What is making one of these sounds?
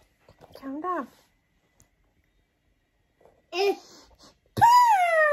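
A young woman talks playfully up close.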